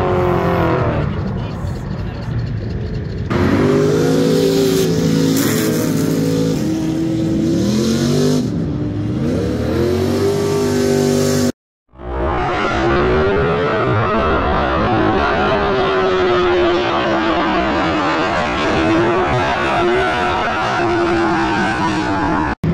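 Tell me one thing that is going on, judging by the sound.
Tyres squeal loudly on asphalt.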